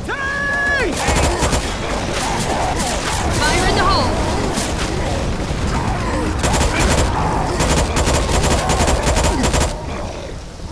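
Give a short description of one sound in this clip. A rifle fires rapid shots in bursts.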